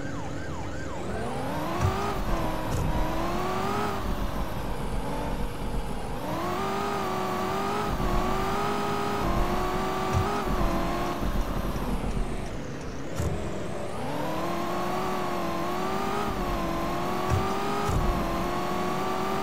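A car engine revs up and down, rising and falling in pitch as it accelerates and slows.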